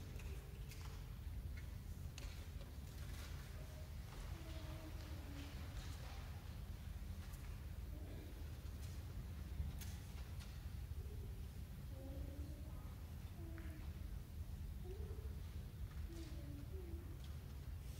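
An ensemble of mandolins and guitars plays a gentle plucked tune in a hall.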